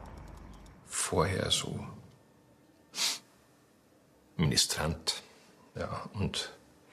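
An elderly man speaks calmly and quietly, close by.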